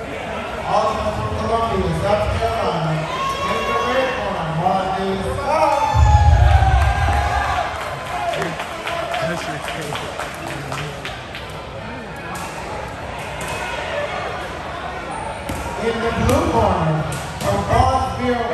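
Several men talk and call out in a large echoing hall.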